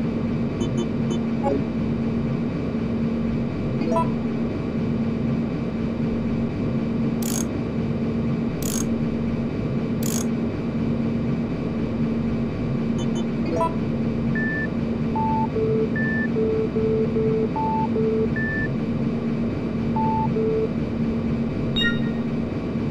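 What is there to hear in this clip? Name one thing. Short electronic clicks sound now and then.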